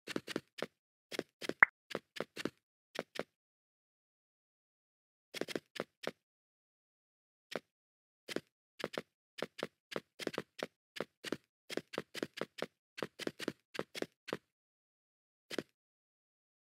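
Game footsteps patter quickly on blocks.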